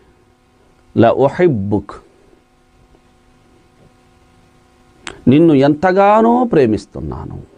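A man speaks calmly and with feeling into a close microphone.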